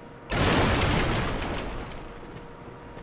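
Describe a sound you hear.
A wooden barrel smashes apart with a loud crash.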